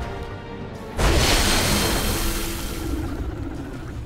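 A magical portal whooshes loudly as a character teleports.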